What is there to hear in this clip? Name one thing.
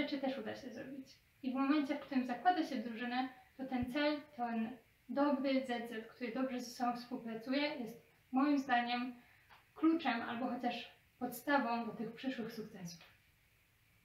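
A girl speaks calmly and clearly, close by.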